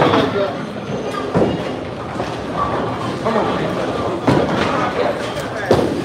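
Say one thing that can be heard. Bowling balls roll and crash into pins in a large echoing hall.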